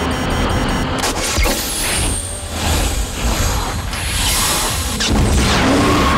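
A whoosh rushes past.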